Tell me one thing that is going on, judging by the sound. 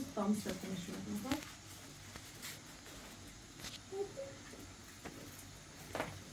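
A knife scrapes while peeling a potato.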